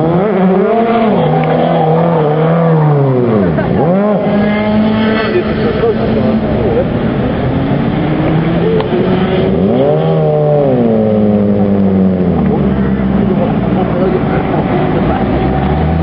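Tyres screech on tarmac as a car drifts in circles.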